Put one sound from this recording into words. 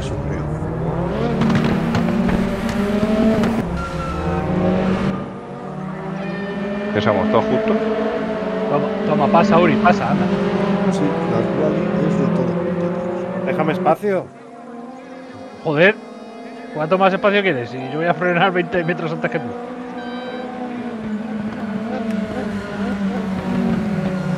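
Racing car engines roar and drone steadily, rising and falling in pitch as they shift gears.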